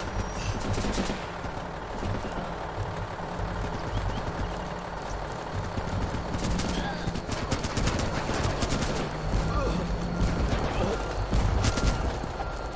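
Rapid gunshots rattle in short bursts.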